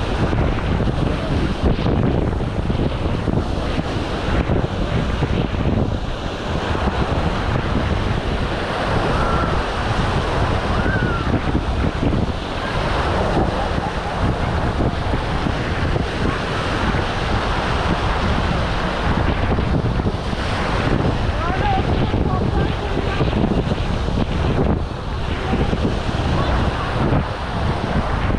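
Many people chatter and shout in the distance, outdoors.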